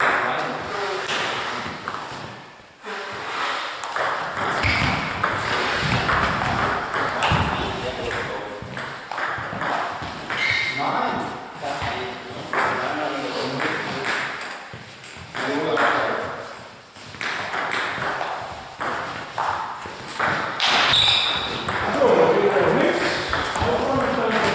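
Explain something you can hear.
A ping-pong ball clicks back and forth off paddles and a table in an echoing hall.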